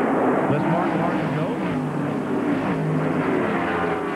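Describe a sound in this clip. Race cars whoosh past close by.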